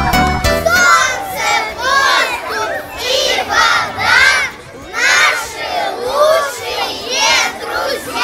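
A group of children sings together.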